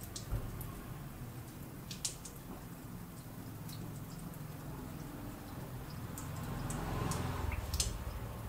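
Water trickles and drips from a man's nose into a sink.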